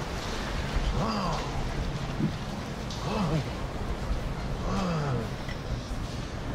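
A man growls and shouts theatrically up close.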